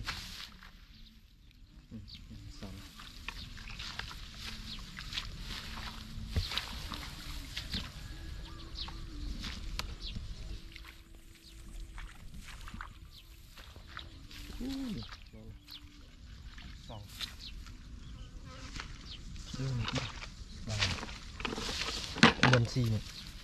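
Dry straw rustles and crackles as a man pulls stalks from it.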